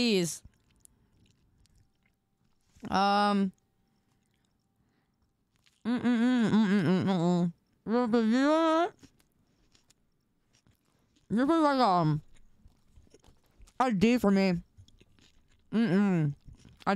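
A young woman speaks with animation into a close microphone, in short bursts.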